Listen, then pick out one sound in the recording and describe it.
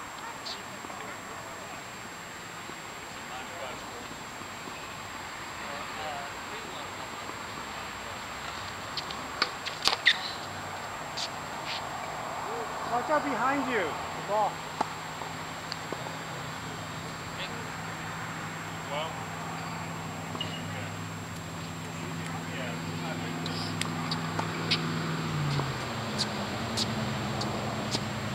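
Tennis balls are struck with rackets.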